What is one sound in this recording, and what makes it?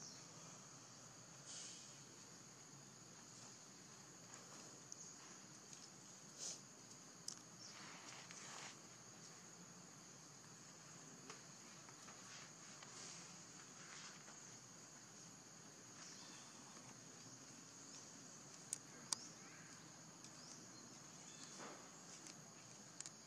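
A baby monkey scrambles over dry leaves and dirt.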